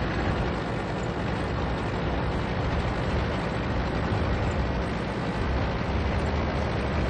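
A tank engine rumbles steadily as the tank drives forward.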